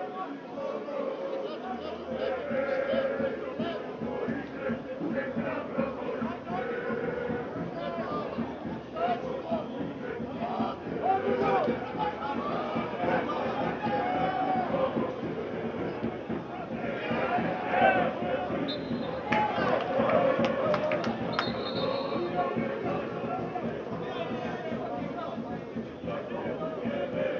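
A crowd in a stadium cheers and chants.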